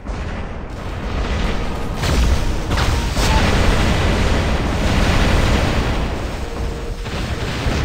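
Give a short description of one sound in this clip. Weapons fire in rapid bursts with loud blasts.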